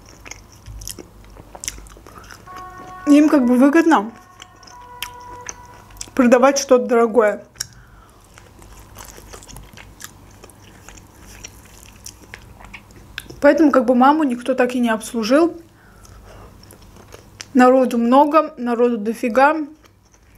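A young woman chews food with soft smacking sounds.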